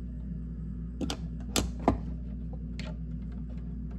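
Small metal parts click and tap against a metal electrical box.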